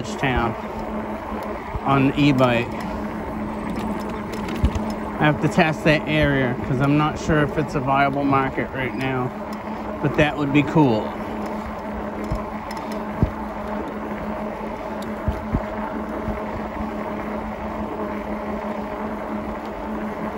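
Bicycle tyres roll over asphalt.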